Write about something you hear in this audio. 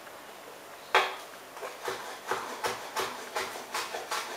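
A chef's knife chops on a wooden cutting board.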